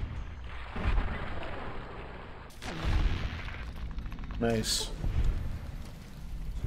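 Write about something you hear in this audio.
A heavy gun fires loud blasts.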